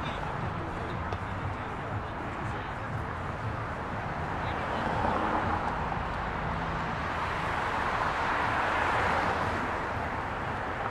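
Cars drive past on a busy road with a steady rush of traffic.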